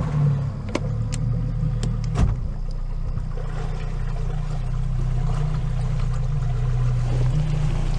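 A boat engine idles with a steady low hum.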